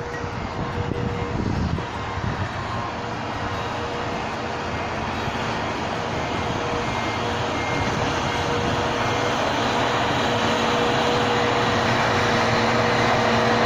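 A tractor engine rumbles and grows louder as it approaches.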